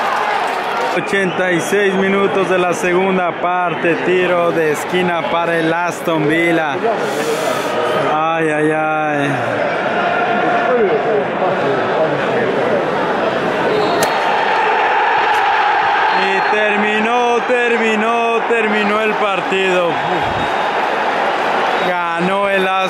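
A stadium crowd sings and chants together loudly.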